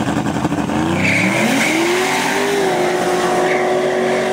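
A car engine roars as a car accelerates away.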